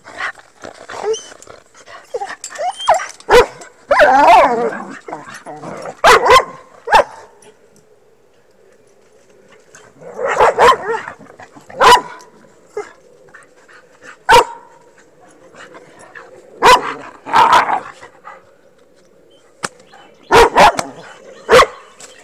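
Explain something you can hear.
A dog barks sharply nearby, again and again.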